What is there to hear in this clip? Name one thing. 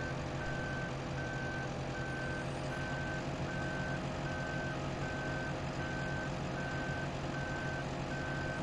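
A diesel engine drones steadily.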